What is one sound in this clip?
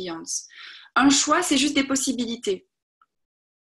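A young woman speaks with animation over an online call.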